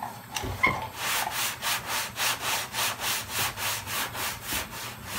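Sandpaper rubs back and forth on a car body panel in quick, even strokes.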